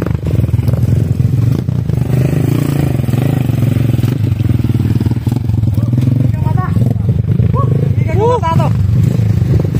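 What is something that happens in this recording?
A motorcycle engine putters steadily up close.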